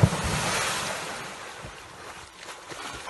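Water churns and splashes loudly, then fades.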